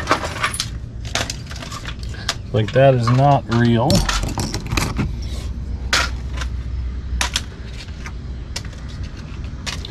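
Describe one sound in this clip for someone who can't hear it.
Items rustle as a woman rummages.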